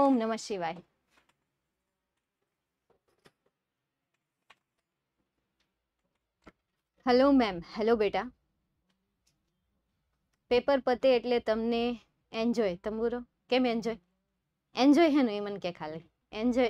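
A young woman speaks with animation into a close microphone, in short bursts with pauses.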